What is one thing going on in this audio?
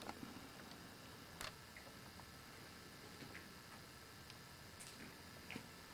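A plastic water bottle crinkles as an elderly man drinks.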